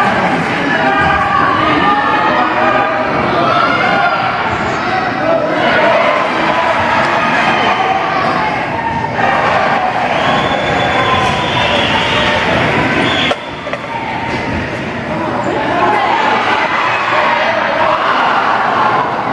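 Young players shout across a large echoing indoor arena.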